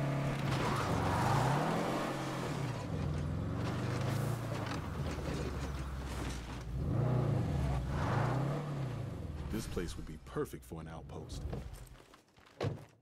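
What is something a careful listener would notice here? A car engine revs and hums as a car drives.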